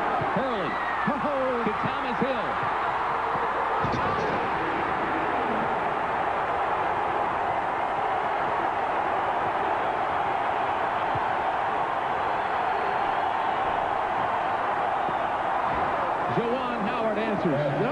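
A large crowd roars and cheers loudly in an echoing arena.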